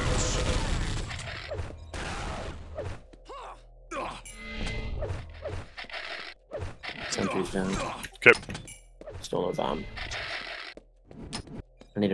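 Gunfire and explosions boom in a fast video game battle.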